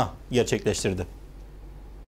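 A man speaks clearly into a microphone, as if presenting.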